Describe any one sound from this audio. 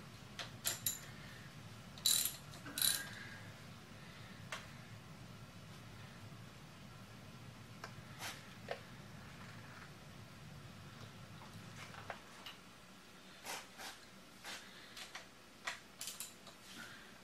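Metal parts clink and tap close by.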